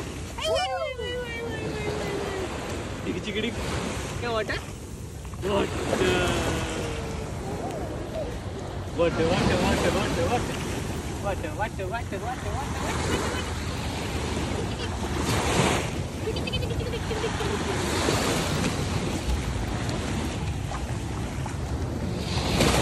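A young man talks playfully and close by.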